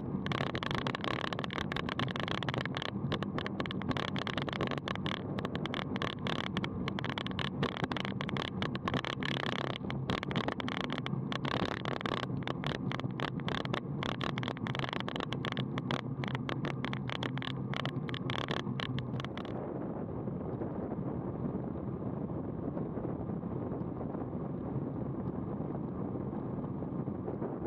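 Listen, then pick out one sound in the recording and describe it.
Wind rushes loudly over the microphone.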